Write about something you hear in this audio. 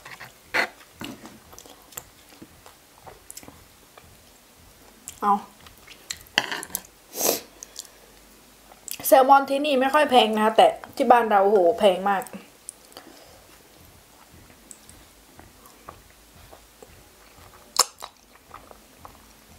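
Chopsticks click and tap against food close by.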